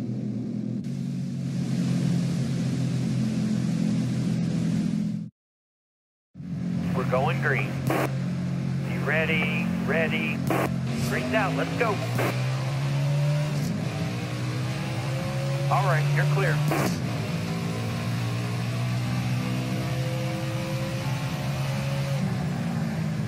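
A race car engine roars, revving up and down.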